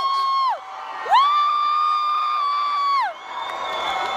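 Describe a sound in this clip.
Young women scream with excitement close by.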